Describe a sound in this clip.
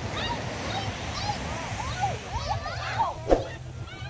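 Children talk and shout nearby outdoors.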